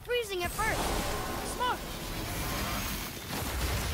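Ice crackles and shatters with a hissing burst.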